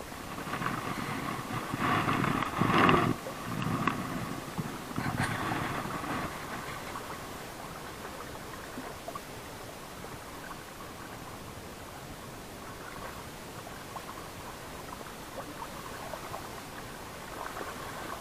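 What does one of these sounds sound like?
Small waves lap against a boat.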